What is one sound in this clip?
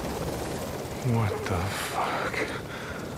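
A man speaks in a low, rough voice, close by.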